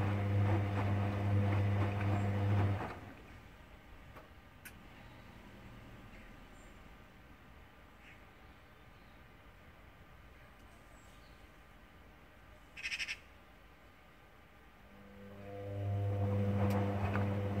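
A washing machine motor hums loudly as the drum turns, stops, then starts again.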